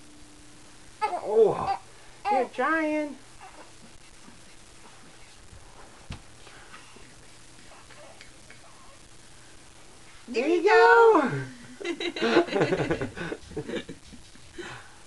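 A young woman talks playfully to a baby in a high, sing-song voice close by.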